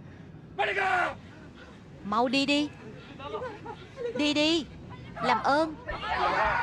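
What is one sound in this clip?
A woman screams in short, sharp bursts.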